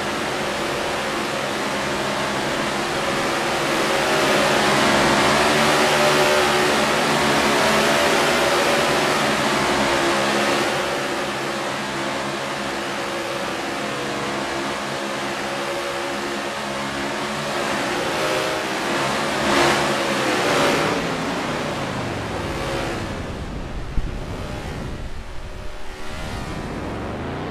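Stock car engines roar at speed.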